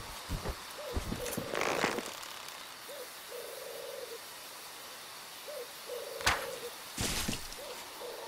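A bow's string twangs as an arrow is loosed.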